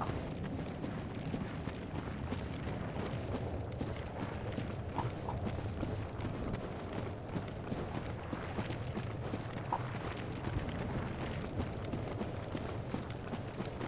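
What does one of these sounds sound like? Fire roars and crackles.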